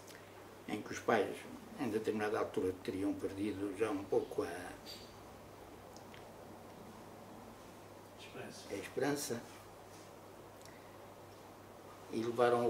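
An elderly man speaks slowly and thoughtfully, close by.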